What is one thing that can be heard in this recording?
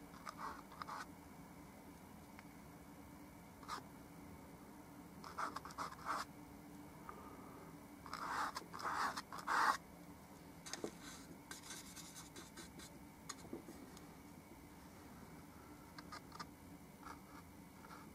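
A paintbrush dabs softly on canvas.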